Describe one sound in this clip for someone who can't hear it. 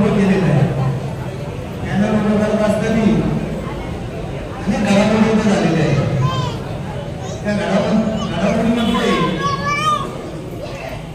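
A man speaks loudly and with emphasis into a microphone, heard through a loudspeaker in an echoing room.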